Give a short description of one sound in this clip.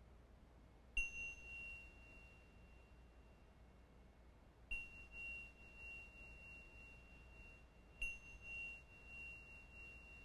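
A small hand chime is struck and rings out with a clear, sustained tone.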